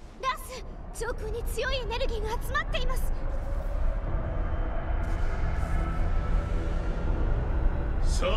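A deep rumble swells and grows louder.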